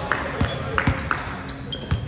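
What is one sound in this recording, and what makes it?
A volleyball bounces on the floor.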